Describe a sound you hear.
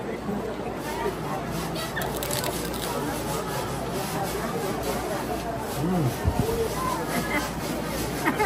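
A young man slurps and chews food.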